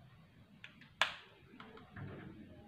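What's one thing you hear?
A plastic bottle cap clicks.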